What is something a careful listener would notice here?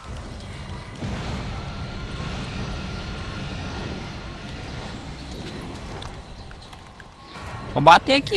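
A large beast growls with a deep, low rumble.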